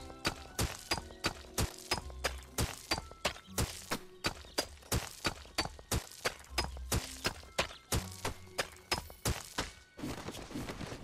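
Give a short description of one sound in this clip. A pickaxe strikes stone blocks in quick, repeated knocks.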